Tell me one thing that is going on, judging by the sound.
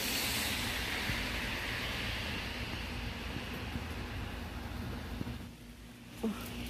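Rain patters steadily on a wet road outdoors.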